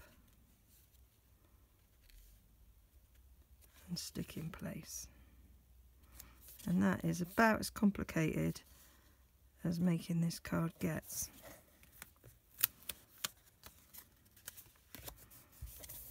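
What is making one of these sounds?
Stiff paper rustles and creases as it is folded by hand.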